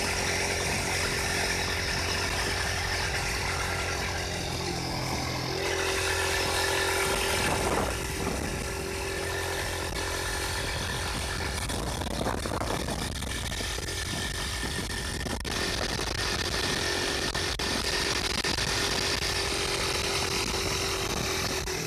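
Wind buffets the microphone on a moving motorcycle.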